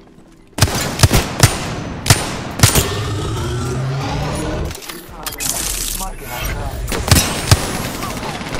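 Gunshots from a video game weapon fire in bursts.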